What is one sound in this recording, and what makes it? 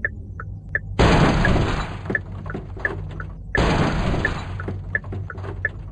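A car crashes and tumbles with loud thuds.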